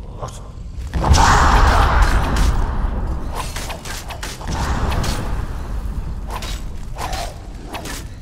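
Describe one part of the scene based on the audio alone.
Magic crackles and bursts with a loud roar.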